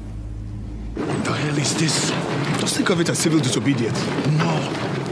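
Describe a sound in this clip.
A man talks loudly outdoors.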